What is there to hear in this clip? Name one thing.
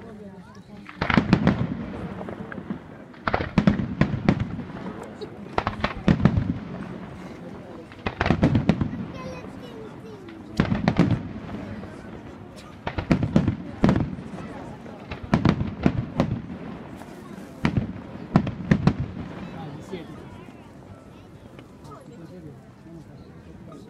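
Fireworks crackle and fizz in the distance.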